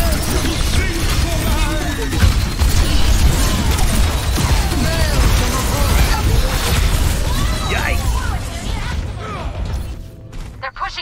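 Guns fire and explosions boom in rapid bursts.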